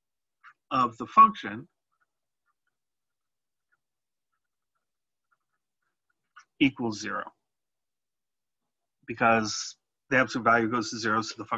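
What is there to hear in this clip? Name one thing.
A man speaks calmly and explains, close to a microphone, in short bursts with pauses.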